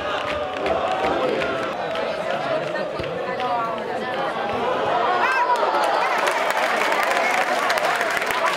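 A small crowd of spectators shouts and cheers outdoors.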